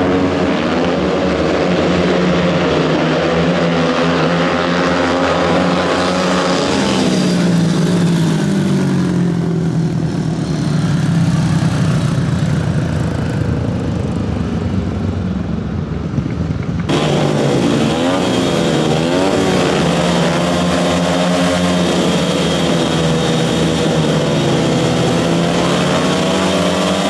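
Several motorcycle engines roar loudly, revving up and down.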